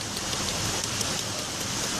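Water splashes lightly in a basin.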